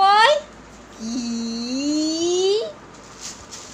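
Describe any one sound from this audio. A young child laughs and squeals nearby.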